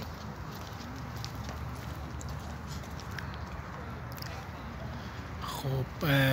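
Footsteps scuff on stone paving nearby.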